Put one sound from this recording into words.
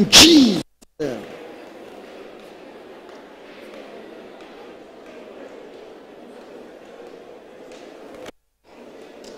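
A crowd of people murmurs and prays aloud in a large hall.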